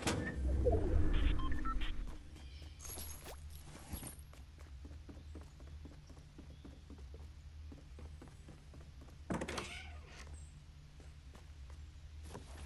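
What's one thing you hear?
A wooden door swings open.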